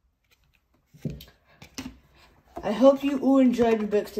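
A cardboard box is picked up and handled.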